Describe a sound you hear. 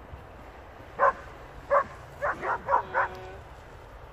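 Dogs bark several times nearby.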